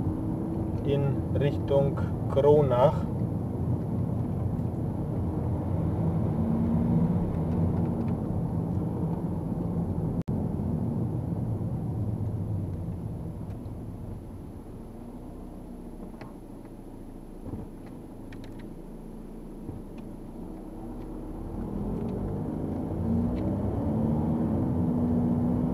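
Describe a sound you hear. A car engine hums steadily from inside as the car drives along a road.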